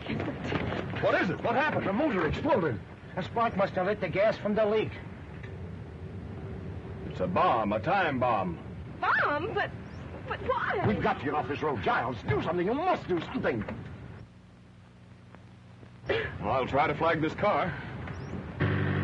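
Men talk with animation, heard through an old film soundtrack.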